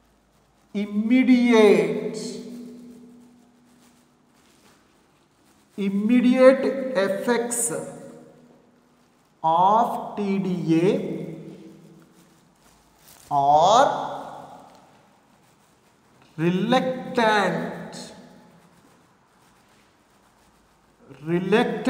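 A man speaks slowly in short phrases with long pauses, in an echoing room.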